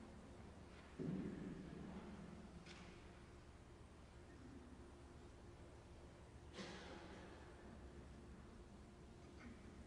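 A young woman sings softly through a microphone in an echoing hall.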